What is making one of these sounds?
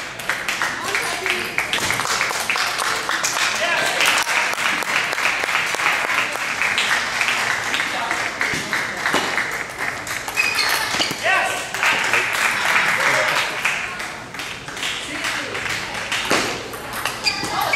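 A ping-pong ball clicks sharply back and forth off paddles and a table.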